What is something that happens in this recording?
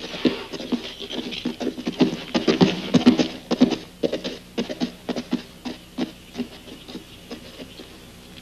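Horse hooves thud on soft dirt.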